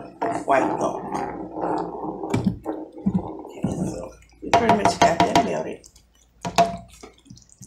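A spatula stirs and scrapes thick sauce in a metal pan.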